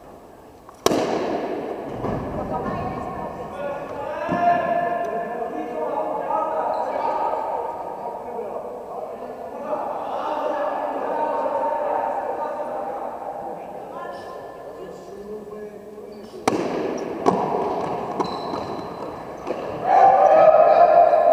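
Young players shout and cheer with excitement.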